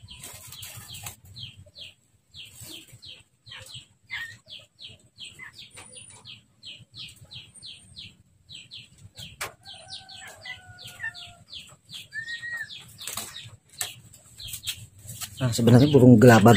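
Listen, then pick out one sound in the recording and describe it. A caged songbird chirps in quick, repeated high notes.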